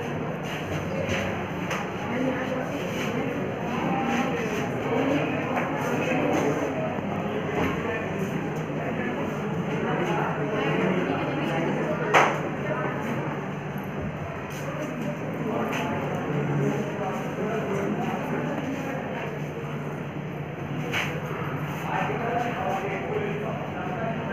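Many boys chatter and talk at once.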